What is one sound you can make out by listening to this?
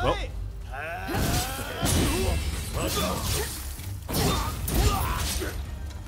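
Steel swords clash and strike in a fight.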